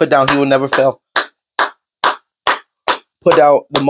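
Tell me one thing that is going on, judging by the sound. A man claps his hands in a quick rhythm.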